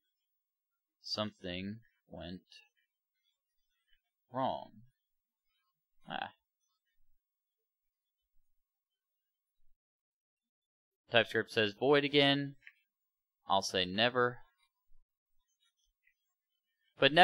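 A young man talks calmly into a close microphone, with pauses.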